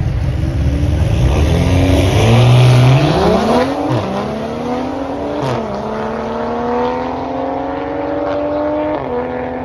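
Car engines roar and rev up as cars launch away.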